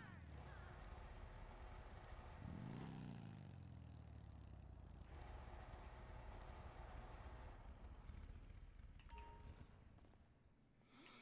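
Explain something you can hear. A motorbike engine rumbles and revs nearby.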